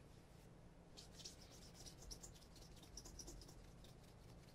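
A cloth rubs briskly against a leather shoe sole.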